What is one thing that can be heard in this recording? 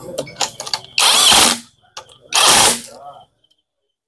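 A pneumatic impact wrench whirs in short loud bursts.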